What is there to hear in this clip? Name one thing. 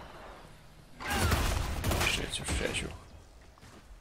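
A magic blast bursts with a loud crackling roar.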